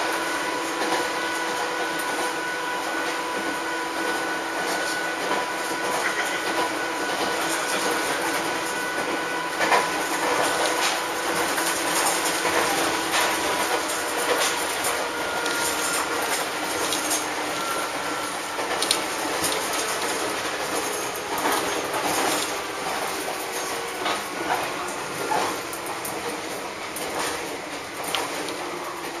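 Train wheels clack and rattle over rail joints.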